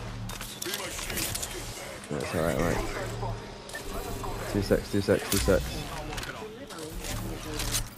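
A syringe hisses and clicks as a healing item is applied.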